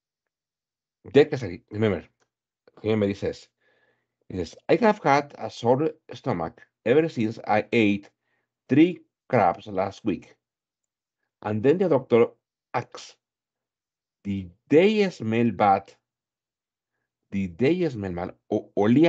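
An adult man speaks calmly through an online call microphone.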